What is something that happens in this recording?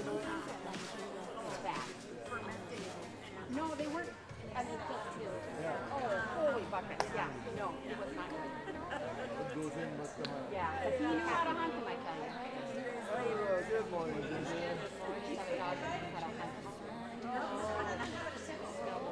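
Men and women chat at once in a large echoing hall.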